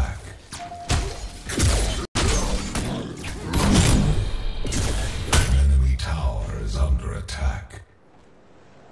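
Gunfire and energy blasts crackle and boom in a fight.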